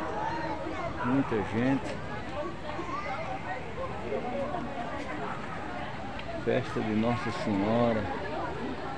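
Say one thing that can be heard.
Nearby adult voices call out loudly in bursts.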